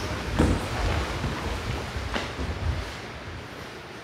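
Bare feet shuffle and thud on a wooden floor.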